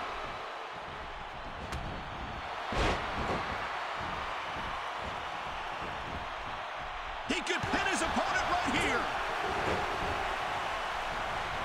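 A large crowd cheers and roars steadily in a big arena.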